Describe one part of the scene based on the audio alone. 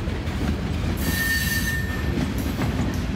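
Wheels screech on the rails.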